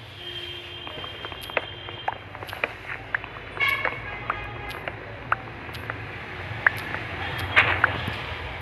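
An axe chops at wood blocks with short, dull knocks.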